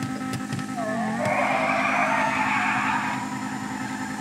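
Tyres screech as a car spins its wheels.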